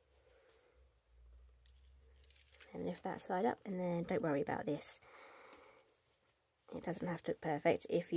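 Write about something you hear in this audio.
Card stock rustles as it is handled.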